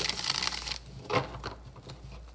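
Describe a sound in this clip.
Cards tap and knock together as a deck is squared up.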